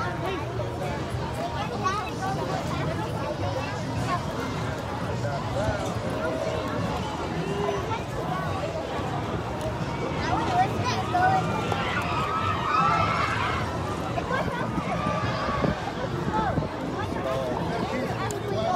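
Footsteps shuffle on wooden boards.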